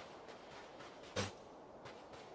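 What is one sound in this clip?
A sword swishes through the air in a quick slash.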